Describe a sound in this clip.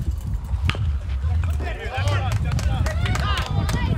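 A bat cracks against a ball in the distance.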